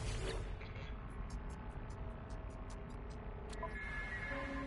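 Short interface clicks tick in quick succession.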